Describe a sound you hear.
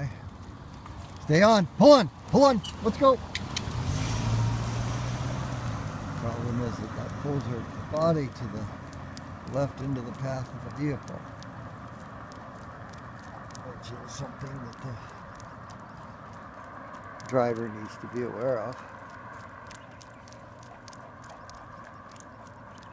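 A dog's paws patter on pavement as it trots along.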